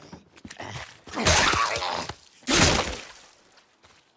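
A man grunts as he strikes with a heavy blow.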